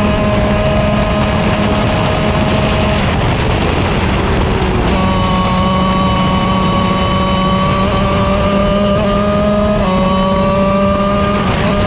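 Other kart engines buzz nearby.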